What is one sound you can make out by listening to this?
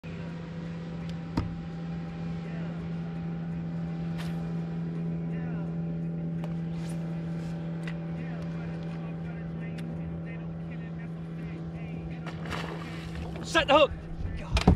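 A trolling motor hums steadily.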